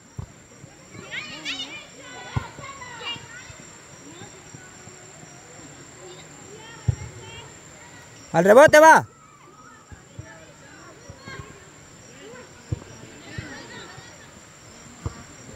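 Young women call out to each other across an open field in the distance.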